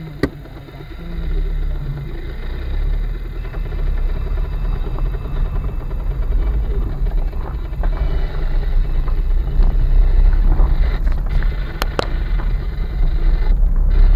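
Tyres crunch and rumble over a bumpy dirt road.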